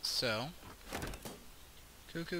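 A menu opens with a short click.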